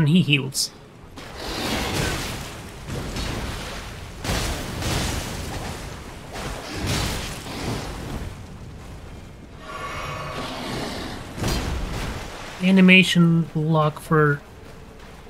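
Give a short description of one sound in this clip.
Heavy blades swing and clash with loud whooshes and metallic hits.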